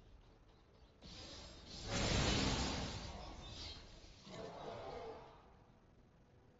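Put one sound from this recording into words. A crackling energy blast roars and then fades away.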